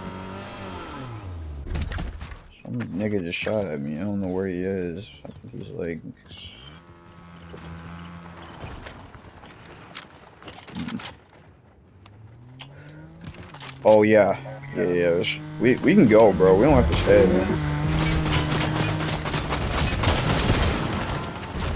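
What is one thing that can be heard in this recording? A car engine hums and revs.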